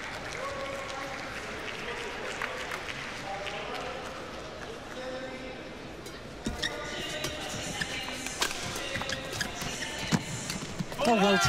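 A shuttlecock is struck sharply by a racket, echoing in a large hall.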